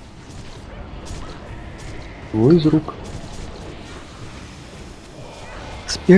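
Magic spells crackle and whoosh in a busy battle.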